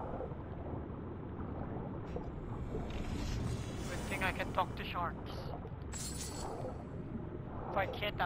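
Muffled water rumbles and swirls steadily underwater.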